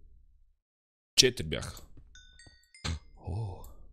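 A pickaxe chips at stone.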